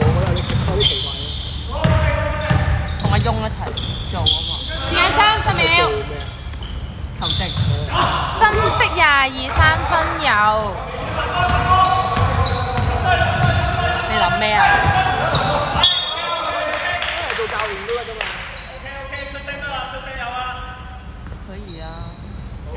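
Young men call out to each other across an echoing hall.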